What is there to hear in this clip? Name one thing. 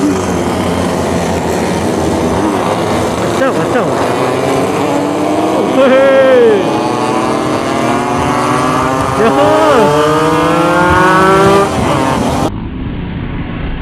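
A motorcycle engine hums steadily up close, slowly rising in pitch.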